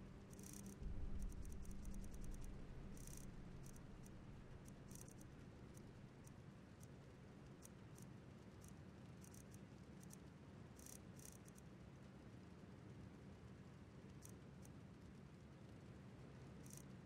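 Quick soft clicks tick as a game menu is scrolled.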